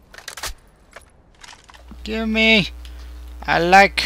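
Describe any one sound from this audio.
A rifle clicks and rattles as it is picked up.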